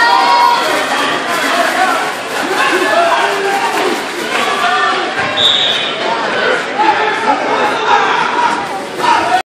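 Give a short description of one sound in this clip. A crowd of spectators talks and shouts in a large echoing gym.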